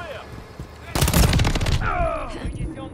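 A submachine gun fires a burst.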